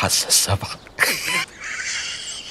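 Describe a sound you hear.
A man laughs heartily nearby.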